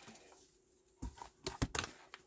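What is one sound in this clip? A plastic stamp case clatters as it is set down.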